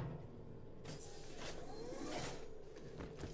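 A metal vent cover clanks as it opens.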